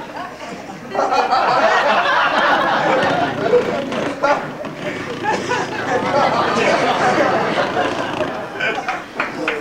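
An audience applauds and laughs.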